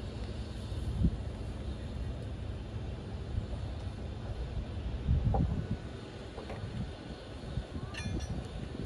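Wooden boards knock a few times.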